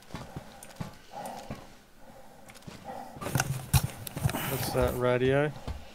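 Boots clank on a metal ladder.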